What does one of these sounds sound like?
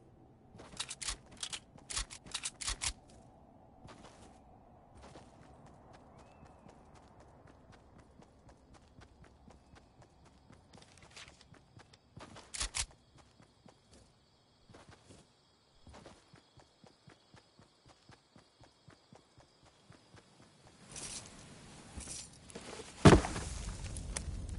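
Footsteps patter quickly over ground in a game.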